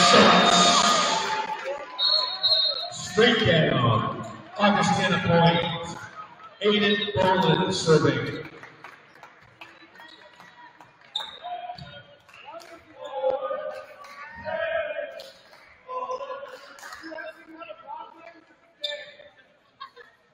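A volleyball thuds as players hit it.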